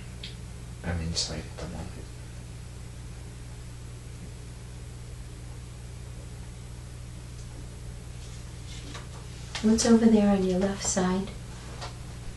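A woman snores softly nearby.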